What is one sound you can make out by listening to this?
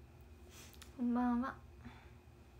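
A young woman says a few words briefly, close to the microphone.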